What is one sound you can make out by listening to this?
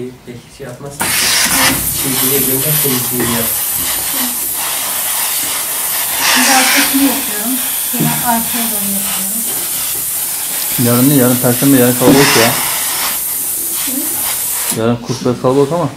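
A steam iron hisses steadily.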